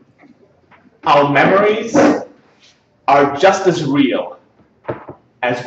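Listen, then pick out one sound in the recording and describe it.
A young man speaks clearly in a room with a slight echo.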